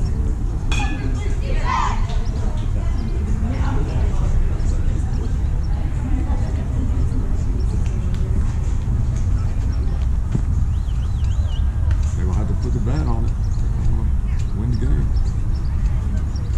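Young players and spectators shout and cheer outdoors at a distance.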